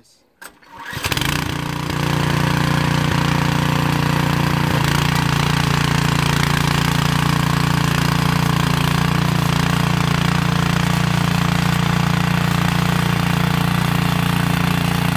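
A small petrol engine starts up and runs with a loud, steady rattling drone.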